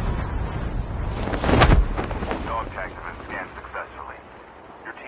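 Wind rushes loudly during a parachute descent.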